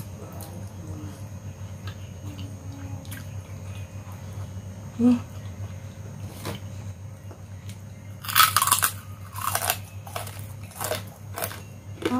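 A woman chews food with wet smacking sounds close to a microphone.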